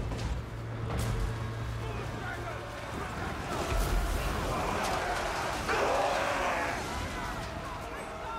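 A battle rumbles on nearby.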